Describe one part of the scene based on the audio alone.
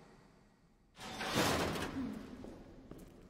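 A metal door creaks and swings shut.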